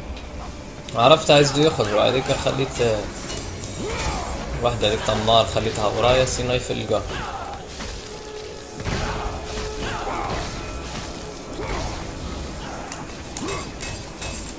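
Blows strike enemies with heavy thuds.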